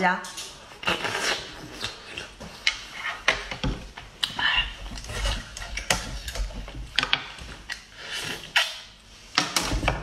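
A young woman slurps an oyster loudly.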